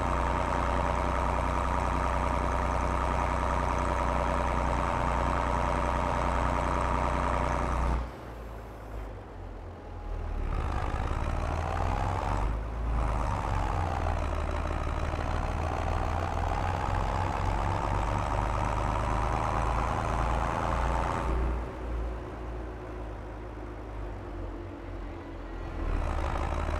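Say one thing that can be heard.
A tractor engine hums and drones steadily as it drives along.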